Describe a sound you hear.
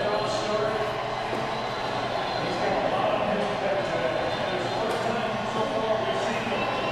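A crowd of people chatters in the background of a busy, echoing room.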